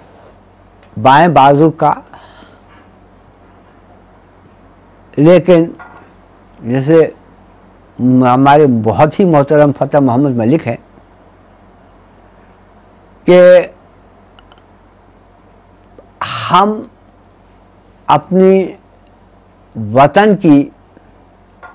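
An elderly man speaks with emphasis into a close microphone, in short bursts with pauses.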